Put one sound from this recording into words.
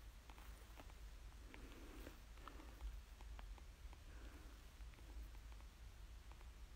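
A puffy jacket rustles softly.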